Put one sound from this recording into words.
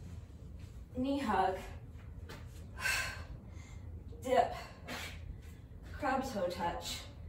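A young woman grunts with effort close by.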